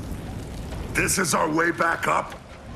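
A man speaks urgently nearby.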